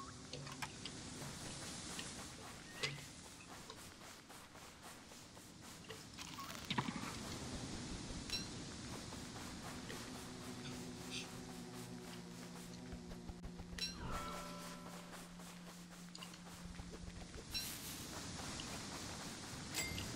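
Light footsteps patter on sand.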